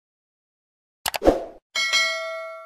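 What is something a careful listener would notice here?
A mouse clicks once.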